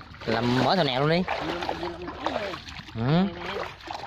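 Water sloshes as someone wades through shallow water.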